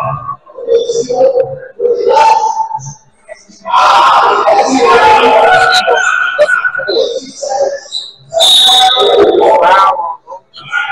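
Men shout to each other.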